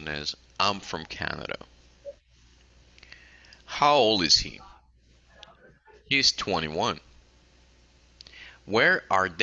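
A woman speaks clearly and slowly through an online call, in short phrases with pauses.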